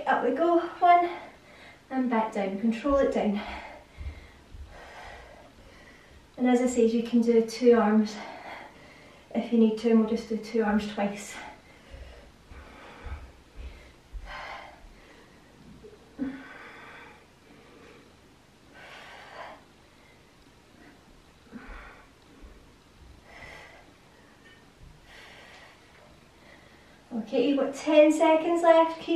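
A young woman gives workout instructions with energy, close to the microphone.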